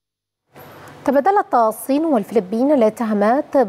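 A young woman speaks clearly and steadily into a microphone.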